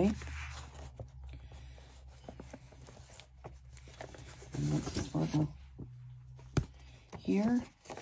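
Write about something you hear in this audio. A book slides and knocks on a metal tray.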